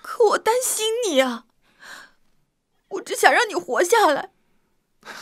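A young woman speaks tearfully up close, her voice breaking.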